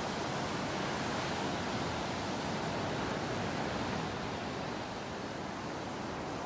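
Ocean waves wash steadily onto the shore.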